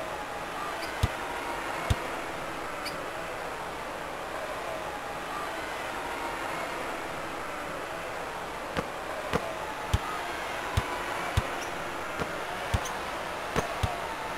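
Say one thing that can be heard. A basketball bounces on a wooden court with dull thuds.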